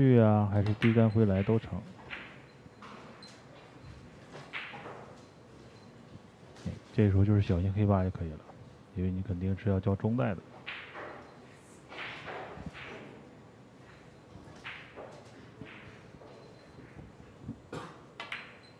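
Pool balls clack sharply against each other.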